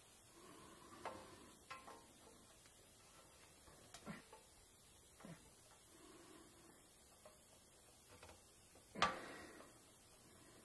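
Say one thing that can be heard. A small tab scrapes and snaps into place.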